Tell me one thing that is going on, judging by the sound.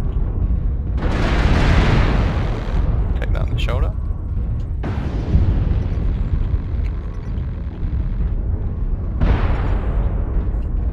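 A low mechanical rumble drones steadily.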